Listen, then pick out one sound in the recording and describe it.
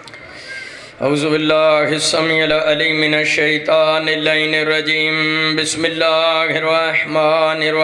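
A young man chants loudly in a melodic voice through a microphone.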